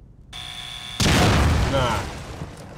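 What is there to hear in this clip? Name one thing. A loud blast booms and roars.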